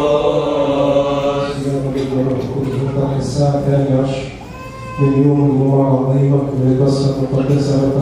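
An elderly man chants through a microphone and loudspeaker.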